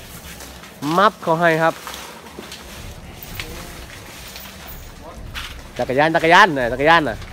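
A young elephant rustles and crunches through dry leaves and stalks.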